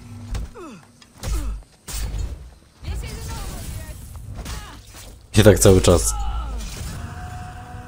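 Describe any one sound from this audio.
Swords clash and ring sharply.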